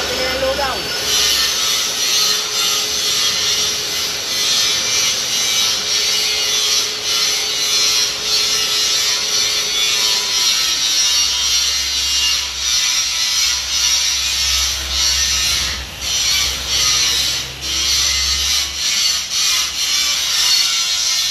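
A metal lathe cuts metal with a harsh, hissing scrape.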